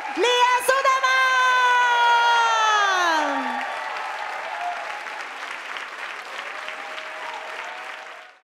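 A large audience claps.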